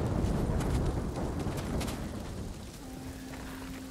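Leaves and branches rustle as someone climbs down through foliage.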